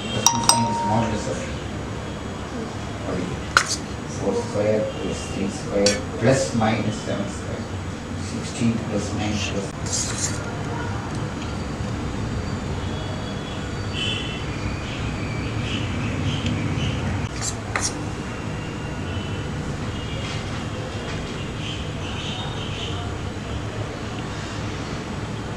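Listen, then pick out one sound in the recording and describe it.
A spoon taps lightly on a silicone mould.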